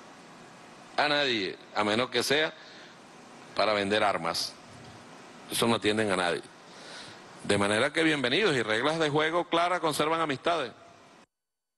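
A man speaks forcefully into a microphone, in short bursts.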